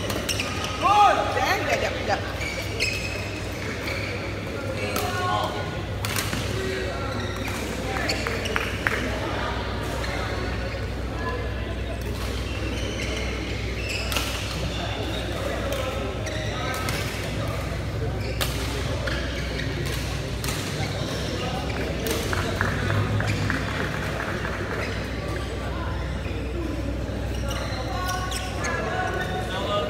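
Sport shoes squeak on the court floor.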